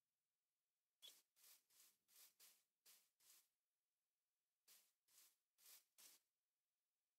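Crops rustle and crunch as they are harvested, in short bursts.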